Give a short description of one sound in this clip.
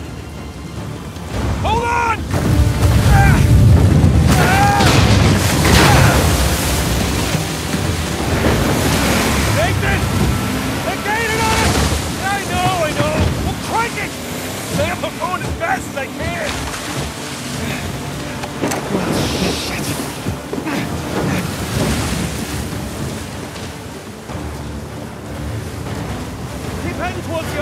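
Stormy waves crash and roar against a boat.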